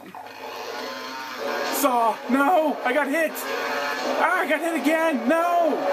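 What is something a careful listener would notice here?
A game monster growls and roars through a small speaker.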